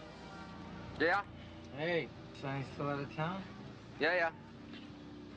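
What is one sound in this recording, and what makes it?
A man speaks in a low voice on a phone.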